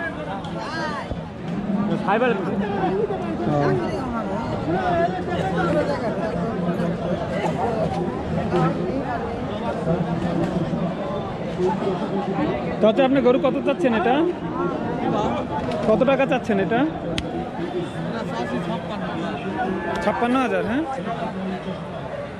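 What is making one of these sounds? A crowd of men talks loudly all around, outdoors.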